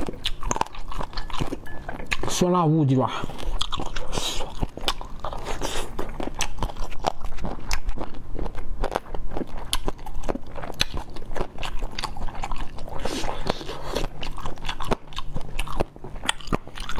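A young man chews and smacks wetly close to a microphone.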